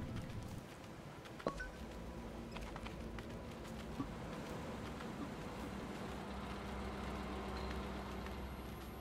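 A small animal's paws patter softly across snow.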